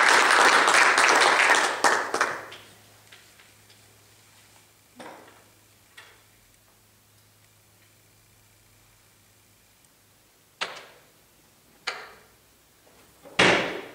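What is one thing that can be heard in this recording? A young man speaks briefly into a microphone in an echoing hall.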